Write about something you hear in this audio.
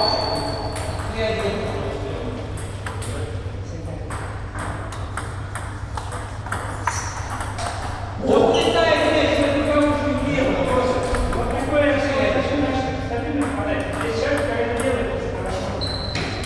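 Table tennis balls click rapidly back and forth off paddles and tables.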